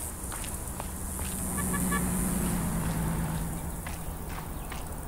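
A car drives past on a road nearby.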